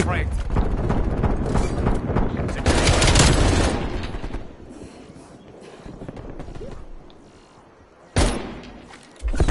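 A rifle fires in rapid bursts, loud and close.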